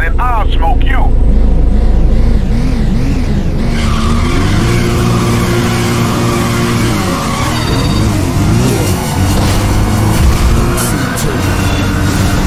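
Car engines rev and roar, rising and falling in pitch.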